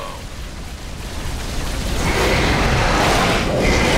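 Explosions rumble and crackle.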